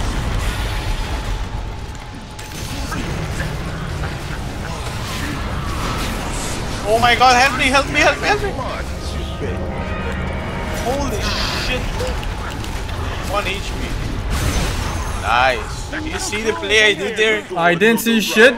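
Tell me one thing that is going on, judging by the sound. Magic blasts, bursts and crackles go off quickly during a fight.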